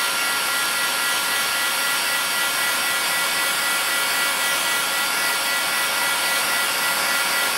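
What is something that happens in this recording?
A heat gun blows with a steady loud whir.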